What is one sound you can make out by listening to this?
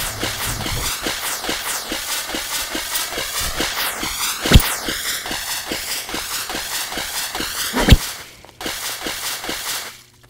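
Wings flap in a quick, steady rhythm.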